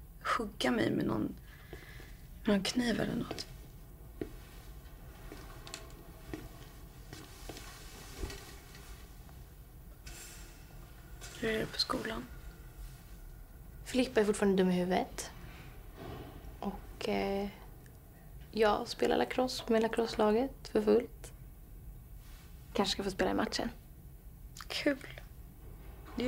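A young woman speaks softly and weakly, close by.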